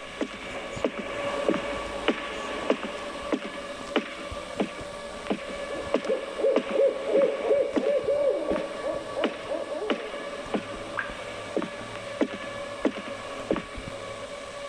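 Footsteps thud steadily on wooden floorboards indoors.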